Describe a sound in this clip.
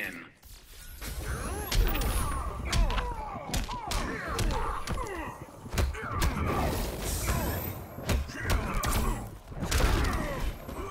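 Heavy punches and kicks land with loud thuds.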